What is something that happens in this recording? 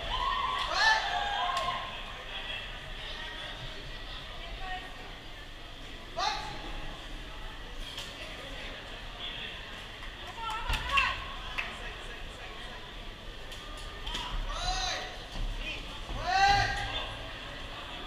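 Men in a crowd shout loudly at times.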